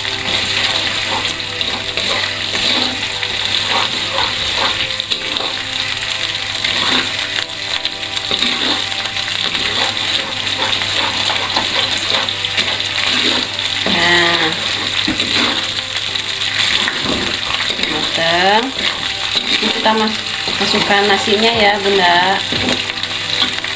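Oil sizzles steadily in a hot pan.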